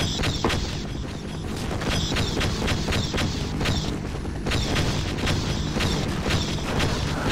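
Gunshots crack in quick, repeated bursts.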